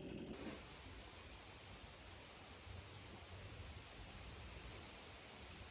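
A heavy wooden log bumps against wooden boards.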